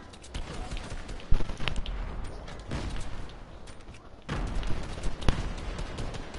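Gunshots fire in sharp bursts.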